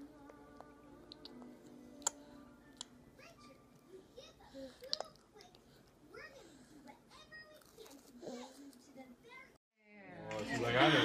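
A baby sucks and smacks its lips softly.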